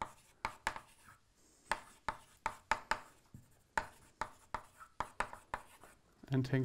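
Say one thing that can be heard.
Chalk taps and scrapes sharply on a blackboard.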